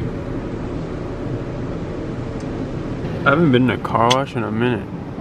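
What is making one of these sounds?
Car wash machinery rumbles steadily outside the car.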